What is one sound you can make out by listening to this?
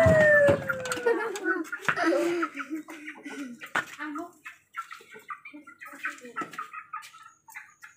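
Young children talk quietly close by.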